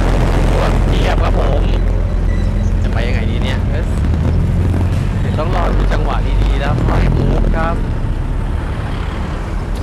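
A motorbike buzzes past.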